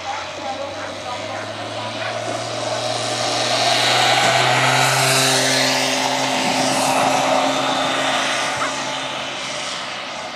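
Greyhounds' paws thud on grass as the dogs race past.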